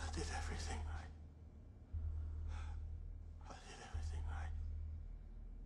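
A young woman speaks quietly close to a microphone.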